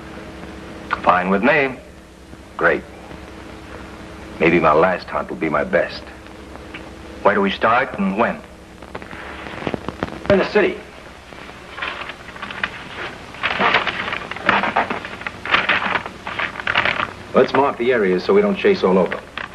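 A young man speaks in a low, earnest voice.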